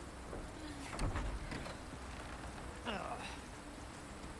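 A wooden gate creaks open.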